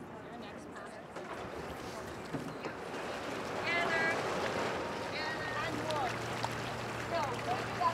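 Paddles splash and dip into water.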